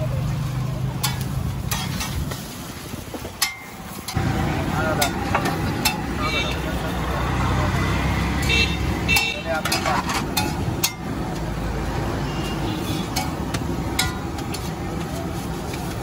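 A metal spatula scrapes and taps on a flat iron griddle.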